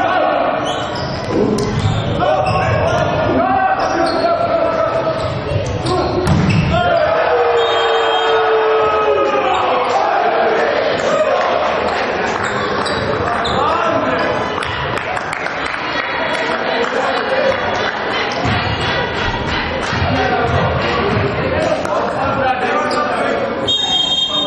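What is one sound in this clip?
Spectators cheer and shout in a large echoing hall.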